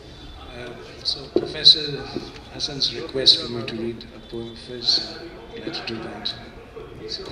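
An older man reads aloud into a microphone, heard through loudspeakers outdoors.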